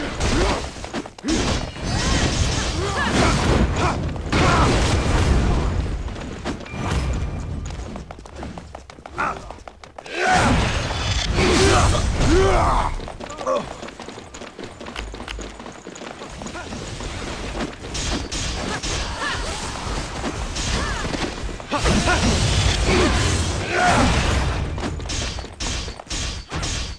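Magic blasts boom and crackle in a fast fight.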